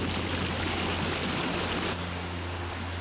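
A shallow stream rushes and gurgles over rocks.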